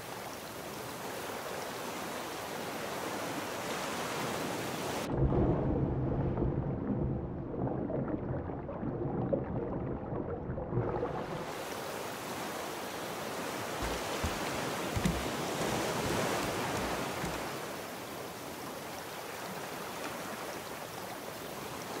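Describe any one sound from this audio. Ocean waves wash and splash steadily.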